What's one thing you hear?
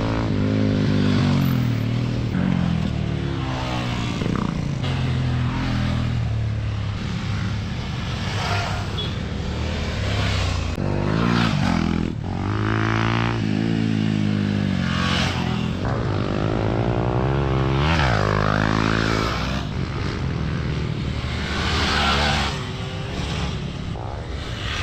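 Dirt bike engines rev and roar loudly as riders speed past, rising and falling in pitch.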